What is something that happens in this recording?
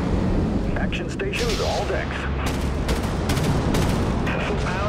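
Guns fire in quick bursts of sharp cracks.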